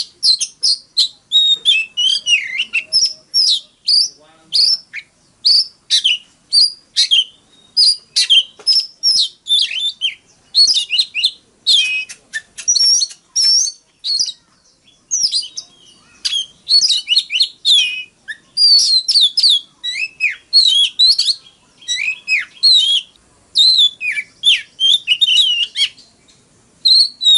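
A songbird sings close by in quick, rich whistles and chirps.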